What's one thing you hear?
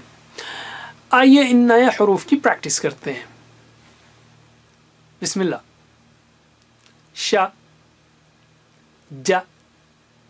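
A man speaks clearly into a microphone, pronouncing single syllables one at a time with pauses between them.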